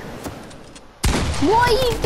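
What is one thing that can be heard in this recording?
A game gun fires in a burst of loud shots.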